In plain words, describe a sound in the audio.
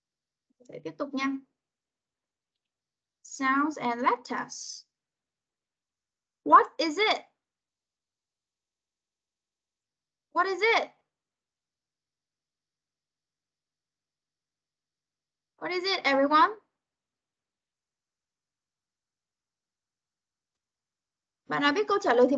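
A woman speaks in short phrases over an online call, with pauses between them.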